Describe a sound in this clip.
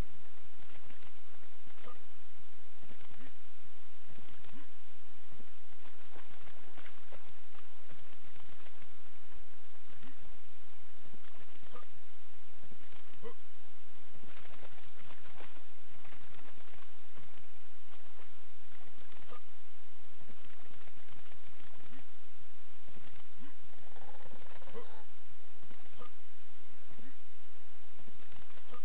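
Water splashes steadily as someone wades through it.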